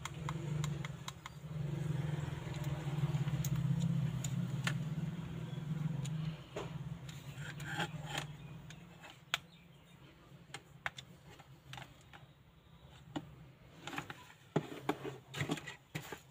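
A plastic pen clicks and knocks as hands handle it.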